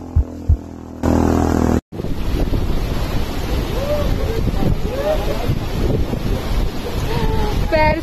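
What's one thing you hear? A mountain stream rushes over rocks.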